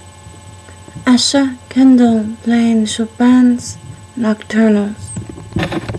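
A woman sings in long, drawn-out notes close to the microphone.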